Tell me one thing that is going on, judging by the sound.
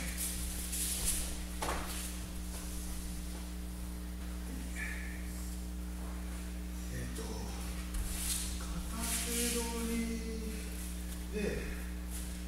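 Cotton uniforms rustle and feet shuffle on a padded mat.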